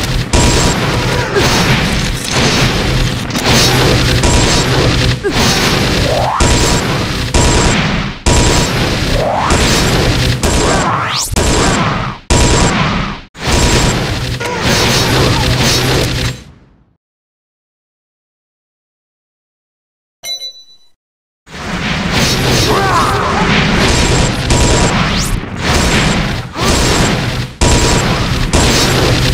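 Magic spells crackle and burst in a rapid, noisy battle.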